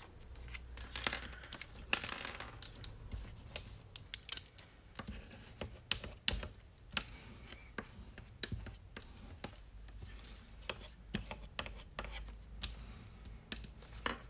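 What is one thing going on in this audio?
Paper slides and rustles on a table.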